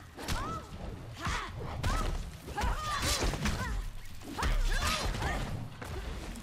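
Fighting-game punches and kicks land with heavy thuds.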